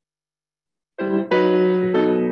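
A group of people sing together.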